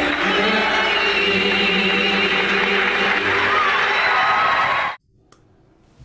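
A bluegrass band plays guitars, mandolin and upright bass.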